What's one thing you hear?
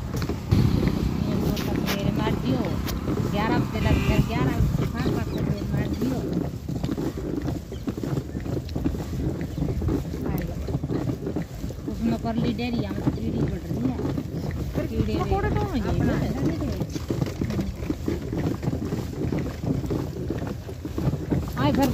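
Hooves clop steadily on the road.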